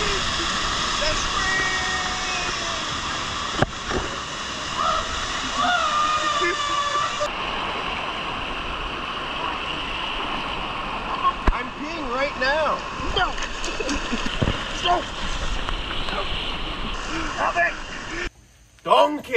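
Water rushes and splashes loudly over rocks.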